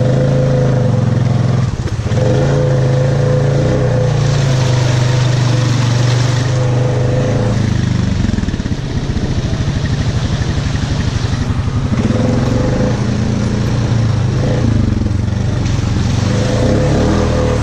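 Tyres splash through muddy water.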